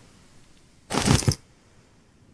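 A tarp rustles as it is picked up.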